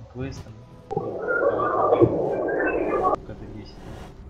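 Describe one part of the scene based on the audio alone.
Magic spells whoosh and crackle in a burst.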